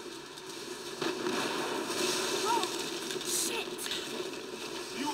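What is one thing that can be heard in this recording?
A rush of sliding snow roars past.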